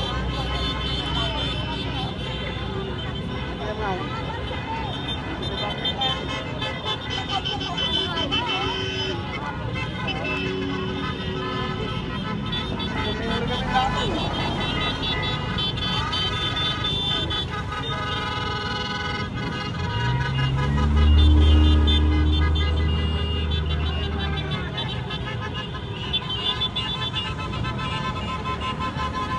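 Many motorcycle engines hum and drone as a long convoy rides past.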